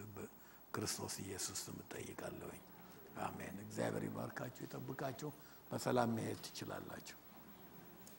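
A middle-aged man speaks with animation through a microphone in a large echoing hall.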